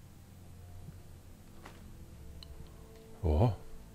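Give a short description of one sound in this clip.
A small crystal clinks as it is picked up from a table.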